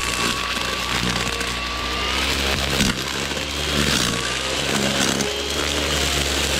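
A trimmer line whips and shreds through grass and weeds.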